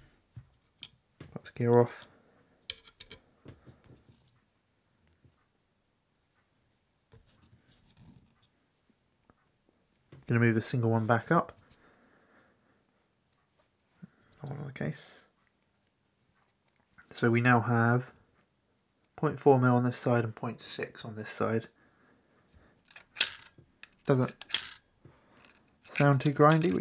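Small metal and plastic parts click and tap softly as they are handled.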